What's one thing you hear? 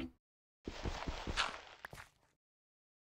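Stone blocks crunch and break in quick knocks.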